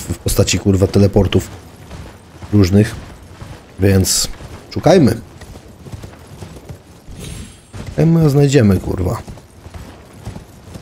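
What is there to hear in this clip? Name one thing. Footsteps run over rocky ground.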